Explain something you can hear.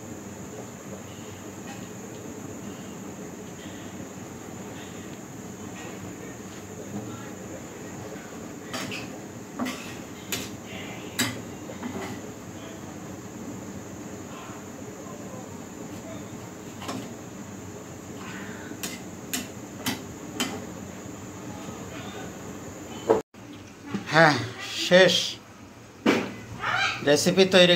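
Food sizzles and fries in a pan.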